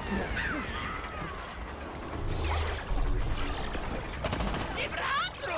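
Heavy cartoon punches thud and smack.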